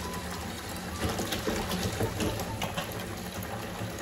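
Liquid glugs as it is poured from a plastic bottle.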